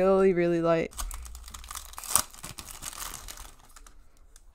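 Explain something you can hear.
Plastic wrapping crinkles as it is peeled off.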